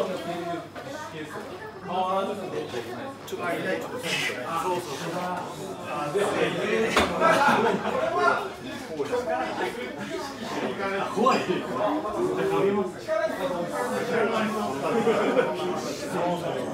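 Young women talk and laugh close by with animation.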